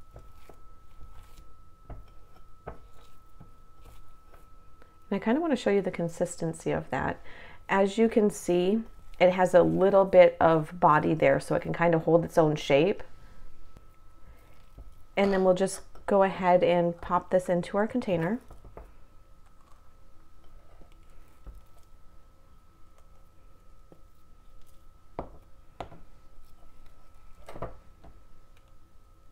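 A spatula scrapes and clinks against a glass bowl.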